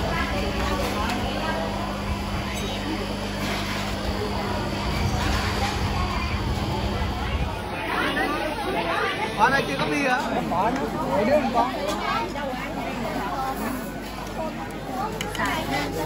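A crowd of people chatters throughout, heard outdoors.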